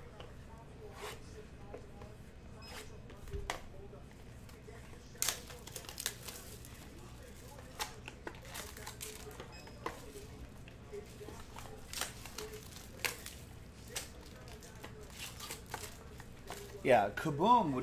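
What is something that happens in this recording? Plastic wrappers crinkle and tear as packs are opened.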